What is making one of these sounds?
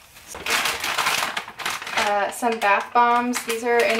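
A paper bag crinkles in a woman's hands.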